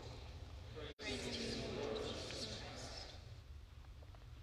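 A congregation sings a response together in a large echoing hall.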